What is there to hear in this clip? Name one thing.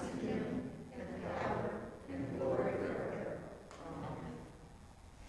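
A middle-aged man speaks slowly and solemnly in a room with a slight echo.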